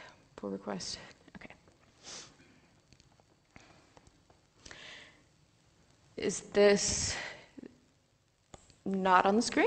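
A woman speaks into a microphone with pauses.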